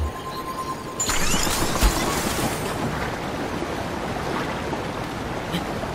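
Water splashes and rushes loudly.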